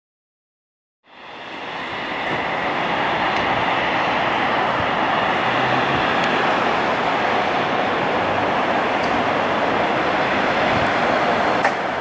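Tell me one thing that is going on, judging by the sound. A propeller plane's engines roar steadily at a distance.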